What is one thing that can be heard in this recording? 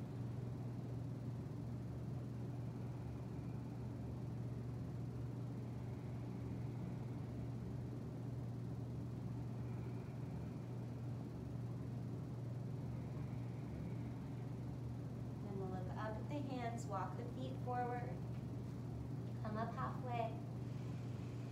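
Electric fans hum steadily nearby.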